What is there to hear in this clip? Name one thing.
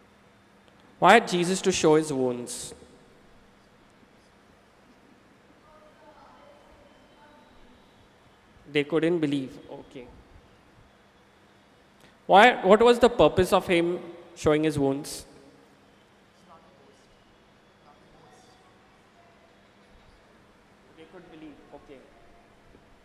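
A young man speaks calmly into a microphone in a reverberant hall, with pauses.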